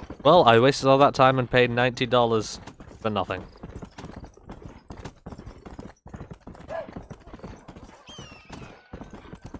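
A horse gallops, hooves thudding on a dirt trail.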